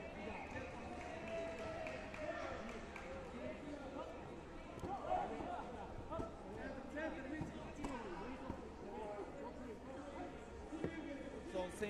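Voices of men chatter and call out around a large echoing hall.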